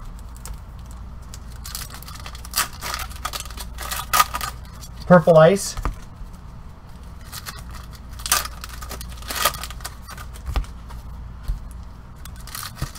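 Gloved hands rustle and crinkle foil card packs.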